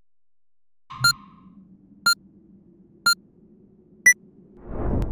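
A countdown beep sounds once a second, the last one higher.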